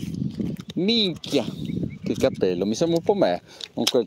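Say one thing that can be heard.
A fishing reel clicks as it is handled.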